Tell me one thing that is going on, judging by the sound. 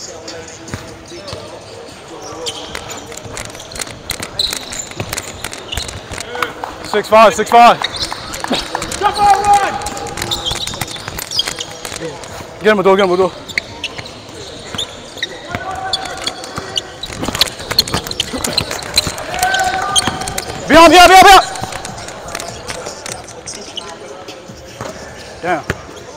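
A basketball bounces on a wooden floor, echoing.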